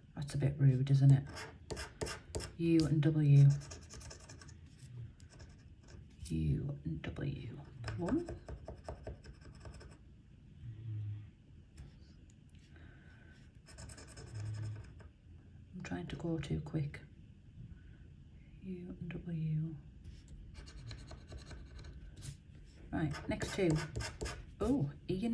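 A metal tool scratches and scrapes across a card.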